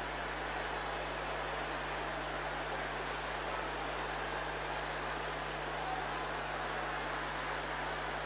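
A crowd of men and women pray aloud together, loud and overlapping, in a large echoing hall.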